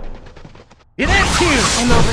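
A fiery attack bursts with a whooshing roar.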